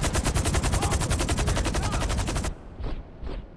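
A helicopter's rotor chops rapidly and loudly.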